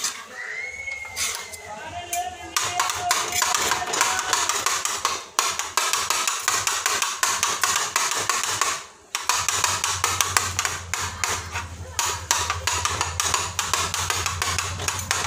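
Meat sizzles loudly in hot oil.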